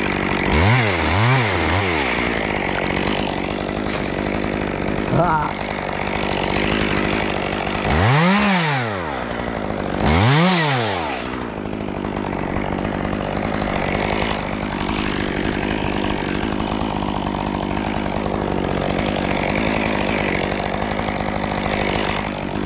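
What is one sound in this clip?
A chainsaw idles steadily close by.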